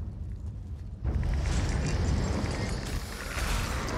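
A magic spell crackles and bursts loudly.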